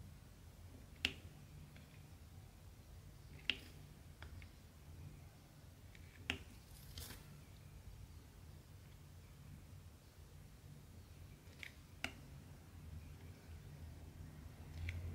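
A pen taps and clicks softly.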